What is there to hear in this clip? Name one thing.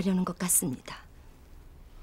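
A woman speaks calmly up close.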